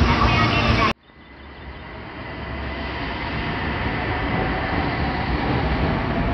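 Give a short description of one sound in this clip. A train pulls away and picks up speed.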